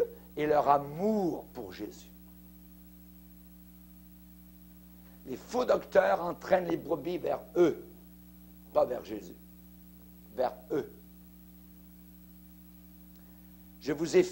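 A middle-aged man preaches forcefully into a microphone, in bursts with pauses.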